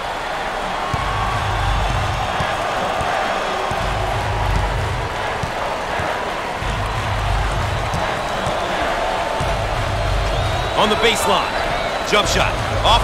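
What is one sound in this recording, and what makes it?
A basketball bounces with dull thuds on the court.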